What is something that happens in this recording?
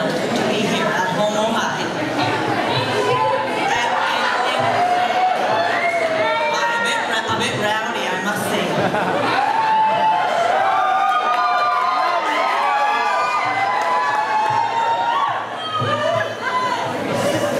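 A woman speaks expressively into a microphone, heard through loudspeakers in a hall.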